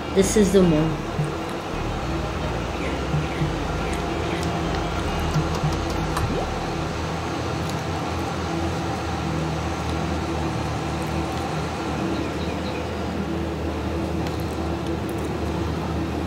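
A tractor engine drones steadily at a low pitch.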